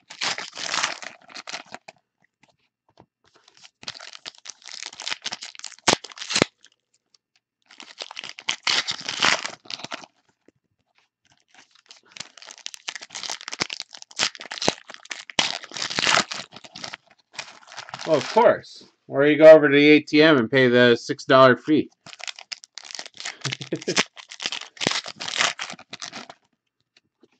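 Hands crinkle and tear open foil trading card packs.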